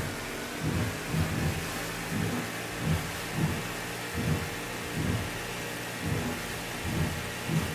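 A motorboat engine drones steadily.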